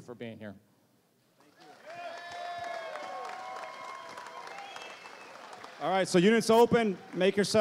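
A man speaks to a crowd through a microphone.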